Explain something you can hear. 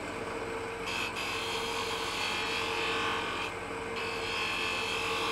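A chisel scrapes against spinning wood.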